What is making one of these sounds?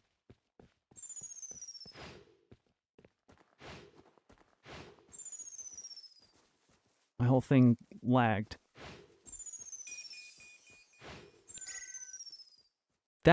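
Swords swish through the air again and again.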